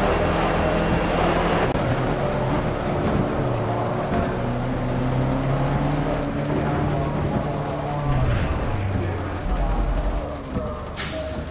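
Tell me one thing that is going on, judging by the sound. A racing car engine drones and slows as the car rolls to a stop.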